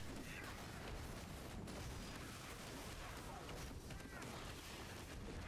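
Magic blasts crackle and roar.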